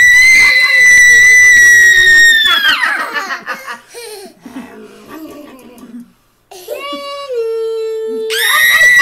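A woman blows a loud, shrill horn that holds its note and then slides down.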